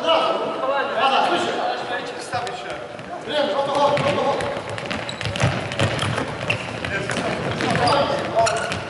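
Men shout to each other across a large echoing hall.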